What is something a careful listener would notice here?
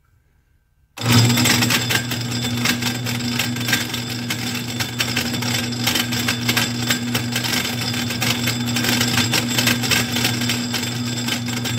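A lathe motor starts up and runs with a loud, steady whirring hum.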